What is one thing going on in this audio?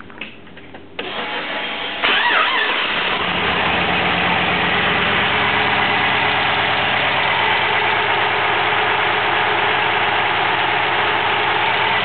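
A car engine idles with a steady, loud rumble and whine.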